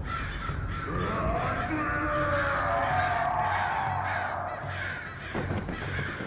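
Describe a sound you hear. A creature shrieks in pain as it burns.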